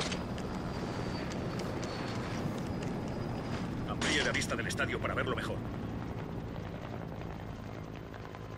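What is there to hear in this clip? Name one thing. Helicopter rotors thump steadily in the distance.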